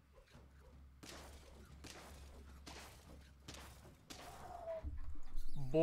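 Game sound effects thump and clatter during a battle.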